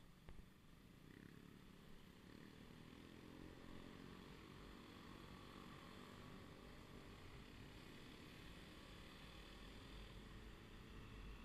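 A motorcycle engine revs up and roars as it rides off.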